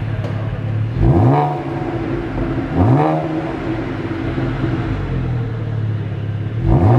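A car engine revs sharply and drops back, several times.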